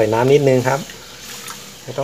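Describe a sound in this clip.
Water pours into a pan.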